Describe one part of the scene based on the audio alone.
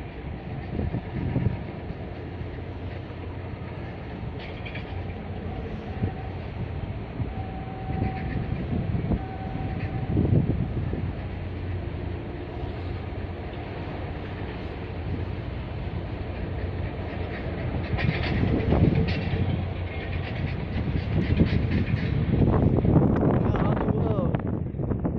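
Water laps against a harbour wall.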